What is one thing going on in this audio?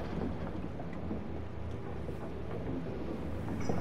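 Wooden planks rattle and knock under rolling wheels.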